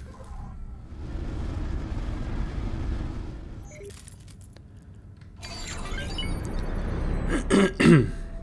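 A spaceship engine rumbles and whooshes.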